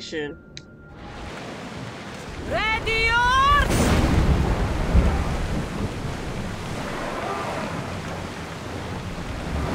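Waves rush and splash against a ship's hull.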